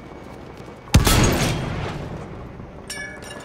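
A rifle fires a single loud crack that echoes away.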